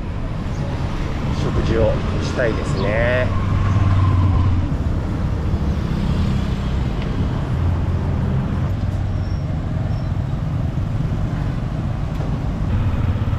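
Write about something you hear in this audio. Motorbike and car engines hum along a busy street.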